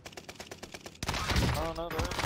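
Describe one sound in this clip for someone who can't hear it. A rifle shot rings out in a video game.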